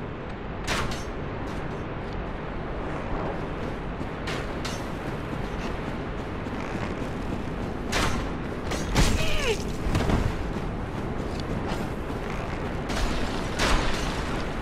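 Footsteps crunch on stone and gravel.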